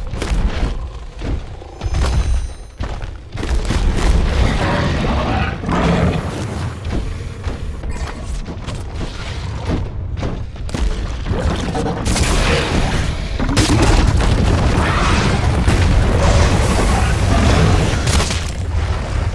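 A large monster stomps heavily over rock.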